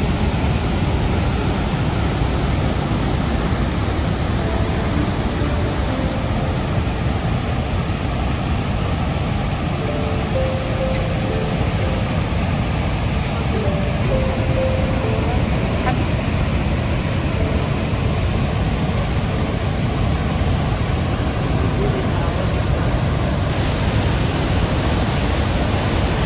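A huge waterfall roars steadily close by.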